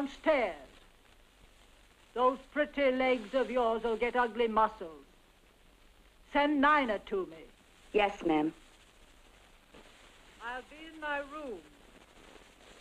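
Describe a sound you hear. A young woman speaks nearby.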